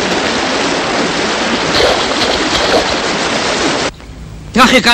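Water rushes steadily over rocks.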